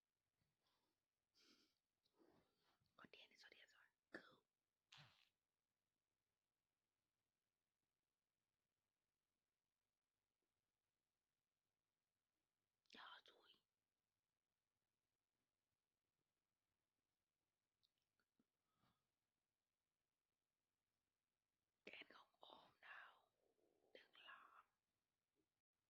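A young person speaks casually and close up, in short bursts with pauses.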